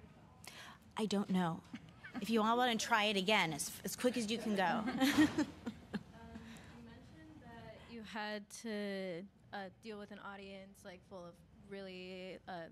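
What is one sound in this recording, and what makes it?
A woman speaks with animation through a microphone in a hall.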